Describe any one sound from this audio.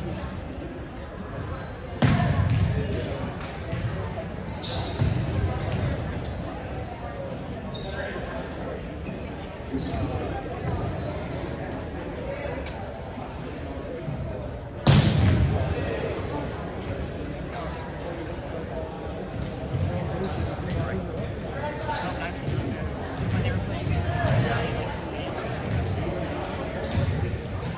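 Players call out to each other in an echoing hall.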